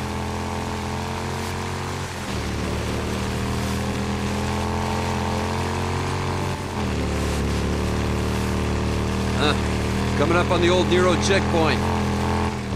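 A motorcycle engine hums steadily, shifting gear now and then.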